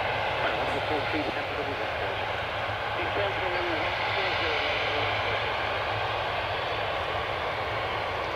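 A jet engine whines and roars steadily.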